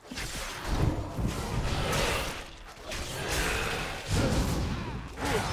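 Magic spells burst and crackle amid clashing combat.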